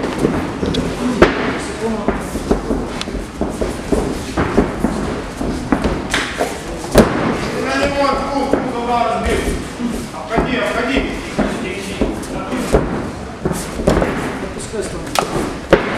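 Bare feet thump and shuffle on a padded mat.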